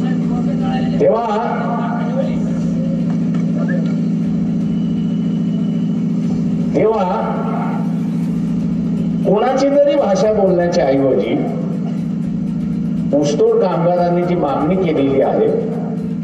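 An elderly man speaks with animation into a microphone over loudspeakers, in short bursts.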